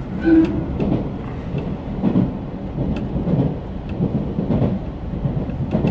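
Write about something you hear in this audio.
An electric multiple-unit train roars through a tunnel.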